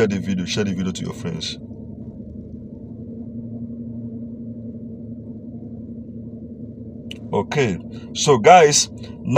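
A young man speaks close to the microphone in a low, casual voice.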